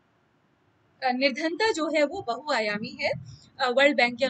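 A woman speaks calmly through a microphone, as in an online call.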